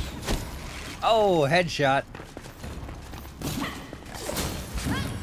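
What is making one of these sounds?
A magic blast bursts with a sharp crackle.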